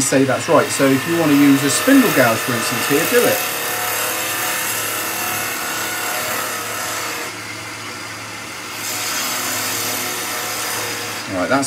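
A chisel scrapes and hisses against spinning wood.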